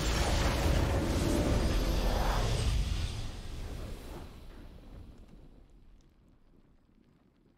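Triumphant game music plays loudly, then slowly fades away.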